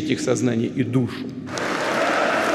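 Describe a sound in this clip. A man speaks firmly into a microphone in a large hall.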